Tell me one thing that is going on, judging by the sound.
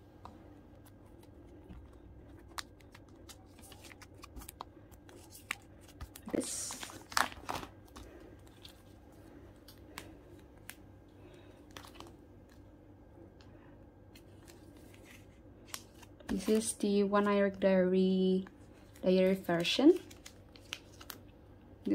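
Cards click and tap softly against plastic pages.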